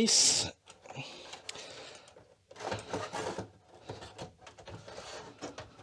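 A plastic case lid scrapes as it slides open.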